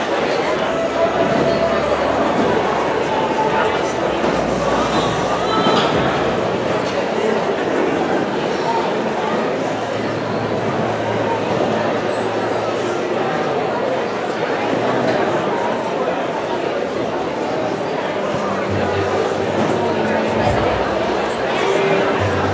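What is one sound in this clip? A crowd chatters at tables throughout a large hall.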